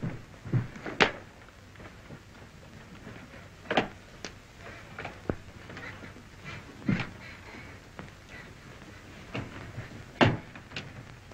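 A wooden box knocks and clicks as it is handled.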